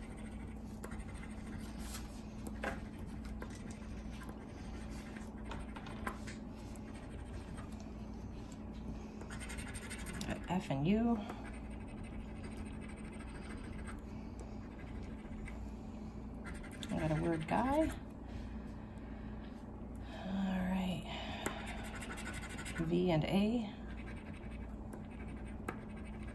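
A coin scratches softly across a card.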